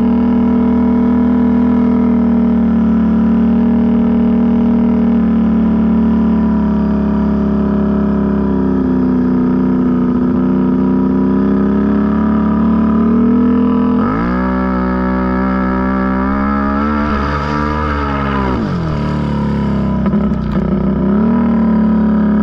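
A quad bike engine drones steadily up close.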